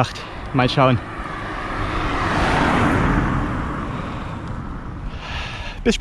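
Wind rushes past a microphone outdoors.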